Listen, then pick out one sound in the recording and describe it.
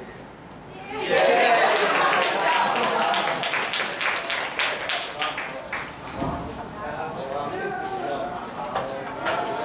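An audience claps and cheers loudly in an echoing hall.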